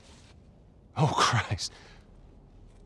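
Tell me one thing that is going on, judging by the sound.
A man speaks in a low, strained voice.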